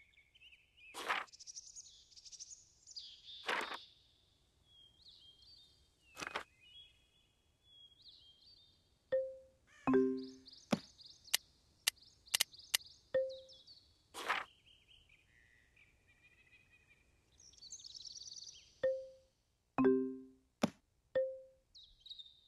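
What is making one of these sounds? Game menu sounds blip and chime as pages turn.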